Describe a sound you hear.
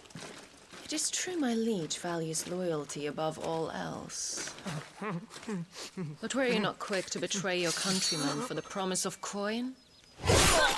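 A woman speaks calmly and coldly.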